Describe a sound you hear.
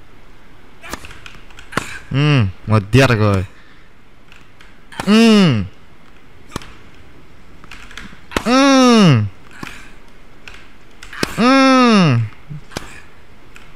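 A racket strikes a tennis ball with a sharp pop, again and again.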